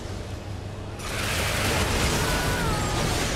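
A loud explosion bursts nearby.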